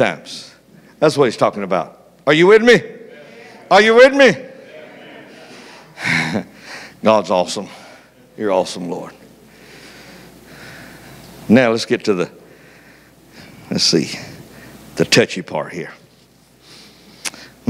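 An elderly man preaches with feeling through a microphone, pausing between phrases.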